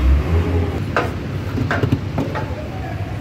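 A hand knocks and clinks against metal parts.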